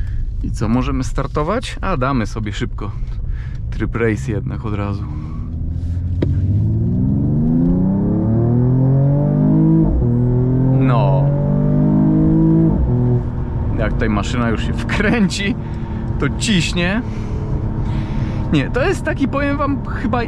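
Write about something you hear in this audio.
A man talks with animation inside the car.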